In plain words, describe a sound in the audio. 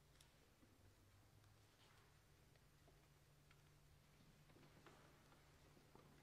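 Sheets of paper rustle as they are handled.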